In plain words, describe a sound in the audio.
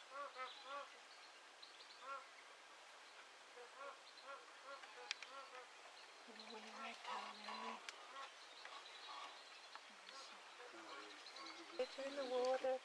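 Birds chirp repeatedly near water.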